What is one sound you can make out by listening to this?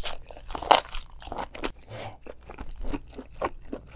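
Soft, wet food squishes between gloved fingers.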